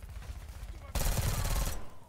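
Rapid gunshots ring out in a loud burst.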